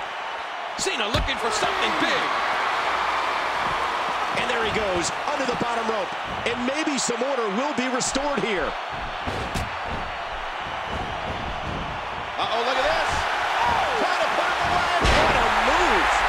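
A heavy body slams down onto a wrestling mat with a thud.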